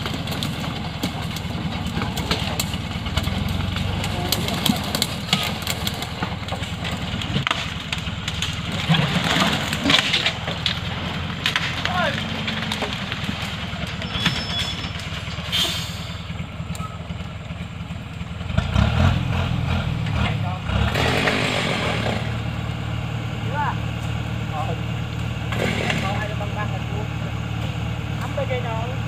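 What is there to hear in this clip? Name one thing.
Wooden logs knock and clatter as they are stacked.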